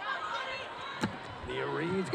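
A volleyball is struck hard with a sharp smack.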